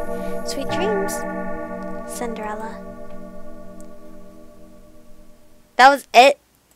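A clock chimes and the ringing slowly fades.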